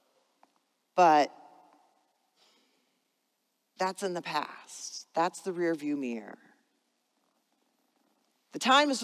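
A woman speaks calmly into a microphone in a large echoing room.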